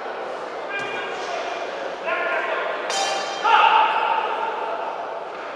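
A crowd in a large hall cheers and shouts.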